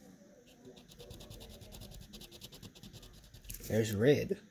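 A crayon scribbles rapidly on paper.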